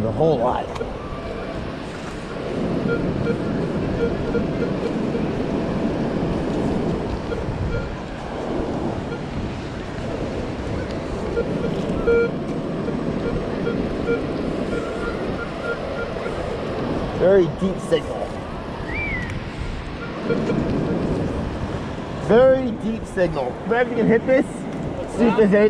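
A metal detector beeps and warbles.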